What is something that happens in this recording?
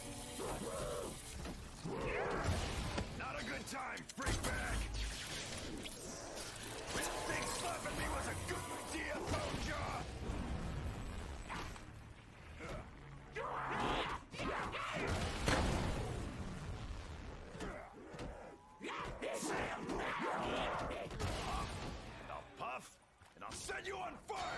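A sword slashes and thuds repeatedly.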